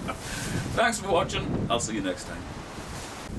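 A middle-aged man speaks cheerfully and close by.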